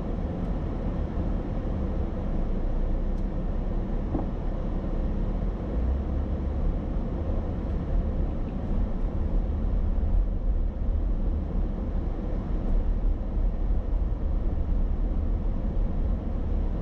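A car engine hums steadily from inside the car as it drives along a street.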